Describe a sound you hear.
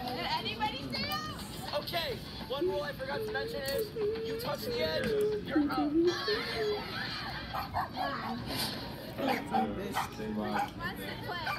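A girl slurps and chews noodles with wet mouth sounds.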